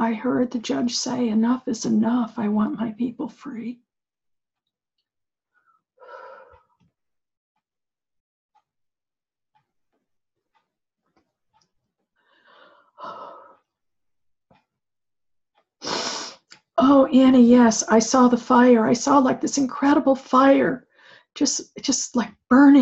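An older woman speaks calmly and clearly into a microphone, pausing at times.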